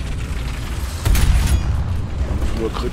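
A tank cannon fires with a loud bang.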